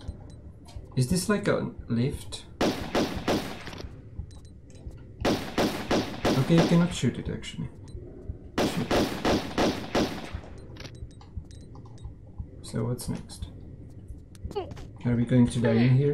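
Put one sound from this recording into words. A man talks calmly into a microphone, close by.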